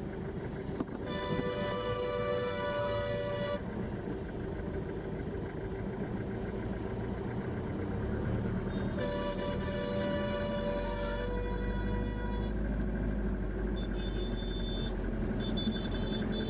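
A car engine hums steadily while driving slowly through traffic.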